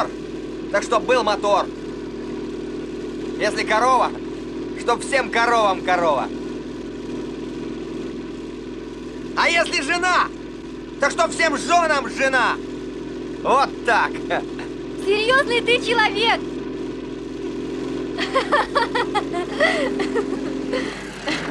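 A man sings loudly outdoors.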